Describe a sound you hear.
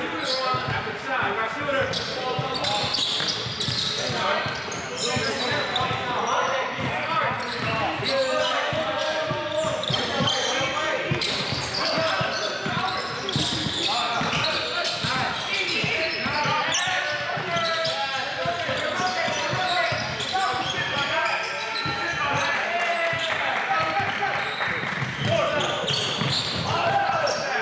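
Young men shout and call out to each other on the court.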